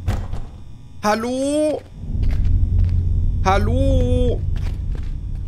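A heavy door creaks open slowly.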